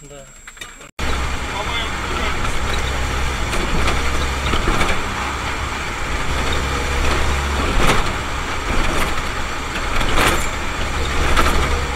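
Tyres roar over the road surface.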